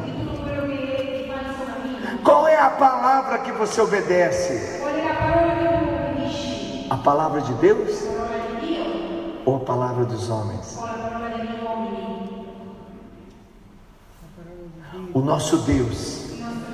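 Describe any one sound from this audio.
A young man sings into a microphone, echoing through a large hall.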